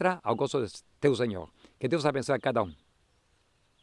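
An elderly man speaks calmly into a microphone close by.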